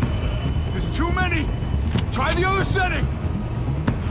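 A man shouts urgently, close by.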